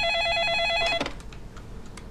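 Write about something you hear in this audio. A telephone receiver is picked up with a click.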